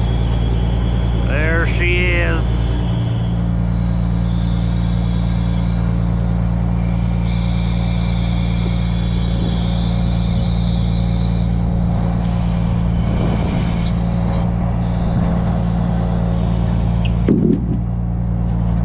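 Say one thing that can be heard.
A hydraulic crane arm whines as it moves.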